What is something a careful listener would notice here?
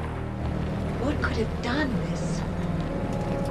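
A young woman speaks quietly and uneasily.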